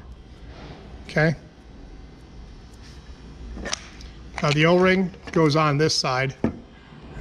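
Plastic fittings rub and click softly as they are handled.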